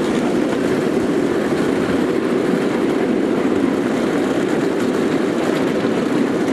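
A small train rumbles steadily along its rails, close by.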